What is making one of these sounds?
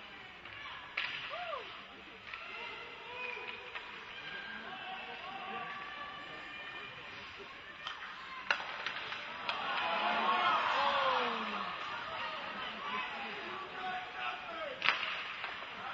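A hockey stick sharply smacks a puck.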